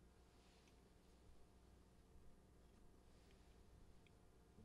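Bread crackles softly as it is torn and set down.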